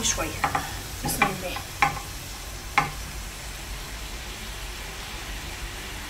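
Dry grains pour and patter into a metal pan.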